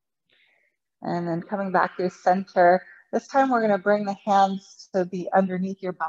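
A woman speaks calmly and closely, as if through a microphone.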